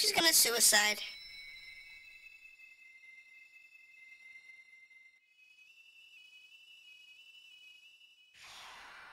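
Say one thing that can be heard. A magical energy blast shimmers with a ringing, chiming tone.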